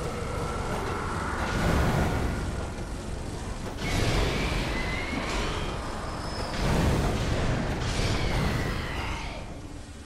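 Flames whoosh and roar in bursts.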